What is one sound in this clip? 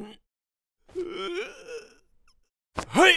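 A man whimpers in fear in a cartoon voice.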